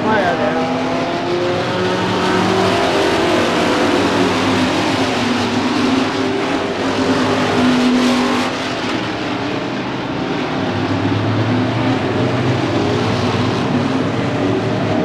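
Many race car engines roar loudly, revving up and down as the cars pass.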